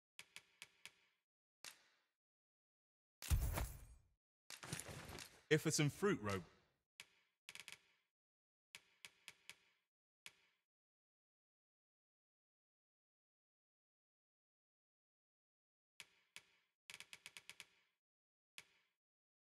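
Short soft menu clicks tick again and again.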